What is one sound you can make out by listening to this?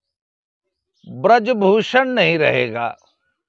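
An older man speaks calmly and close up.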